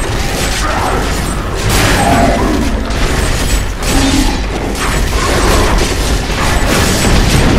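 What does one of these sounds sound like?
Weapons strike monsters with dull hits.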